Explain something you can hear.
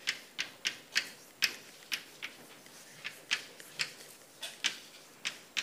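Chalk taps and scratches sharply on a blackboard.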